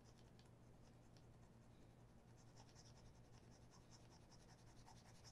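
A cloth rubs softly against a leather shoe.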